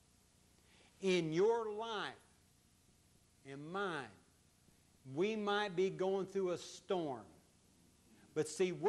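An elderly man speaks slowly and expressively through a microphone, with pauses between phrases.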